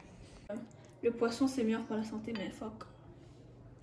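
A young woman speaks with animation close to the microphone.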